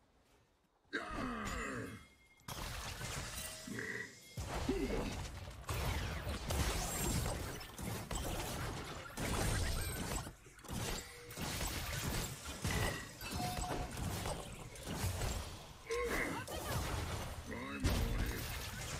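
Spell and hit effects from a video game clash and whoosh.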